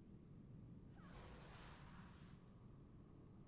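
A magic spell bursts with a soft whoosh.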